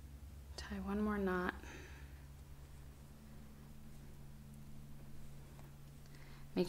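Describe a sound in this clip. Yarn rustles softly as it is pulled through knitted stitches.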